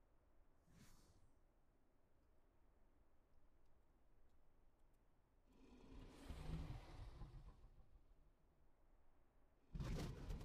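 A winged creature flaps its wings while hovering.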